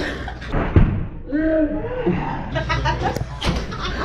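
Pillows thump on a bed.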